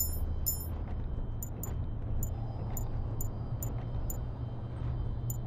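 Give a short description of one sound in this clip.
Short electronic menu clicks tick at a steady pace.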